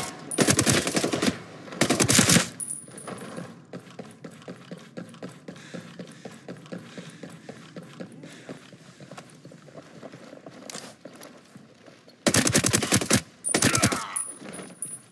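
Rifle shots fire in loud rapid bursts.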